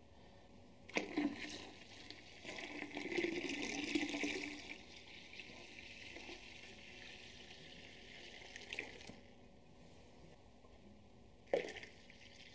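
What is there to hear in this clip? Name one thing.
Liquid pours steadily from a pot into a container of liquid.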